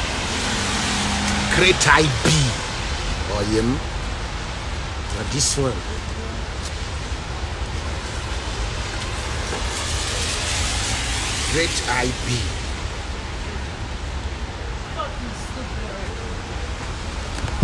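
Traffic and city noise rumble steadily outdoors.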